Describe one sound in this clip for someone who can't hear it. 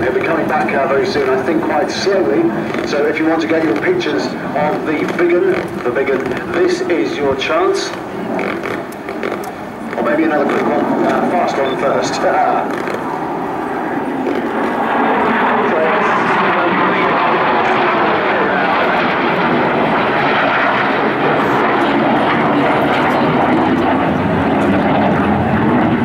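A jet engine roars overhead, growing louder as the jet passes close.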